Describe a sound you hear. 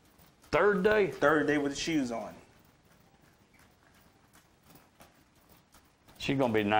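A horse's hooves clop on gravel at a brisk gait.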